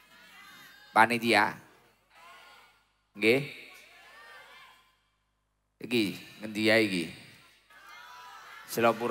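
A young man preaches forcefully through a microphone, in bursts with echoing pauses.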